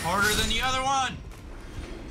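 A young man exclaims loudly with a rising and falling voice into a microphone.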